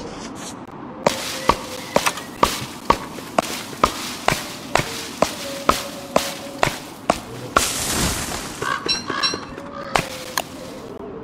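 An axe chops into wood with quick, repeated knocks.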